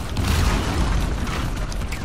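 A gunshot cracks.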